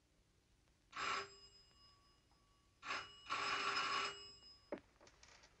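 A telephone rings loudly.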